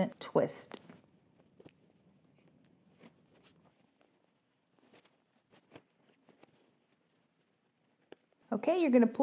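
Fabric rustles softly as it is handled and gathered.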